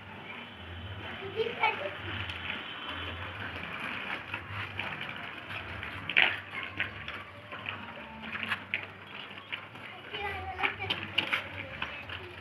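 Young children call out and chatter nearby.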